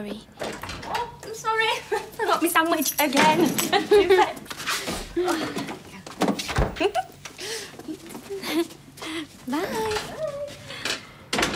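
A young woman speaks with animation and laughs.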